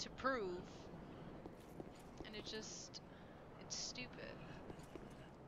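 A young woman talks briefly into a close microphone.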